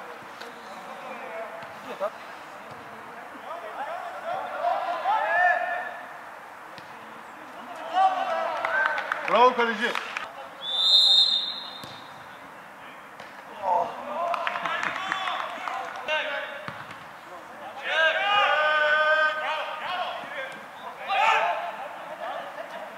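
A football is kicked with a dull thud.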